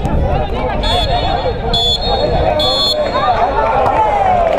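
A referee's whistle blows in several short sharp blasts.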